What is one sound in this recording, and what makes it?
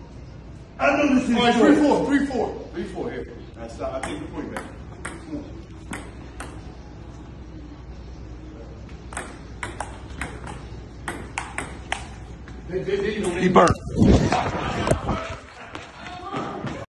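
A man talks and laughs loudly nearby.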